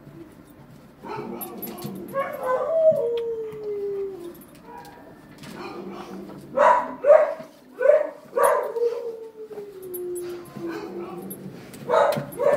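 A dog whines and yelps in a high, sliding voice.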